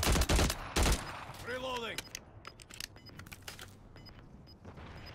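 A gun clicks and rattles as it is reloaded.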